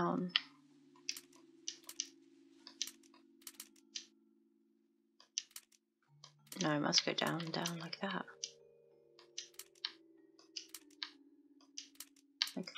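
Small metal pieces click softly as they turn.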